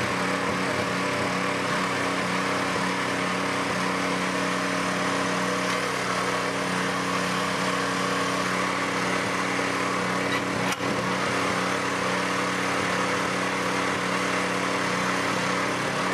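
A small petrol tiller engine runs steadily and loudly close by.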